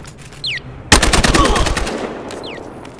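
A rapid burst of shots rattles off.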